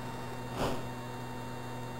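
An explosion bursts loudly in a video game.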